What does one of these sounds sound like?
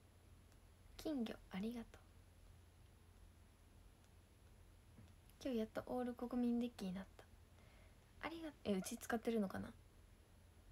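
A young woman speaks softly in short bursts close to a microphone.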